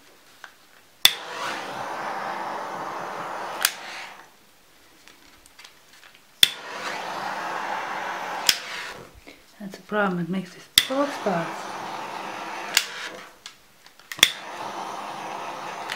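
A heat gun blows with a steady whooshing roar, switching on and off several times.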